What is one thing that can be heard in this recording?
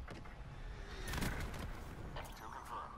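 A missile explodes with a loud, deep boom.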